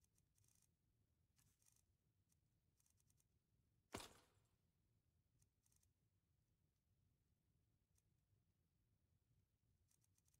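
Soft interface clicks and ticks sound as menu items are selected.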